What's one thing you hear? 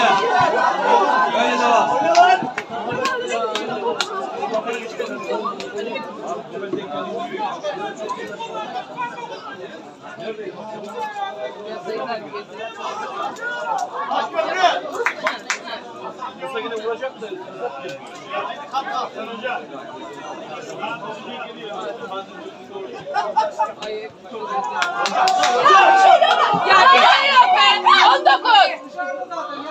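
Men talk close by.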